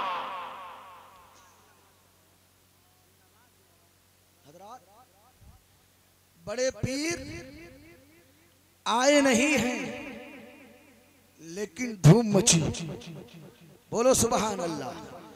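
A man preaches with passion into a microphone, his voice booming through loudspeakers with a strong echo.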